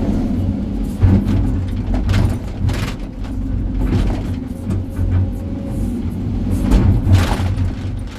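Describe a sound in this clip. A steel bucket scrapes and clanks against rocks.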